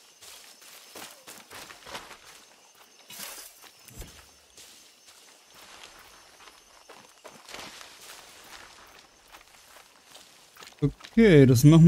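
Footsteps tread over soft ground.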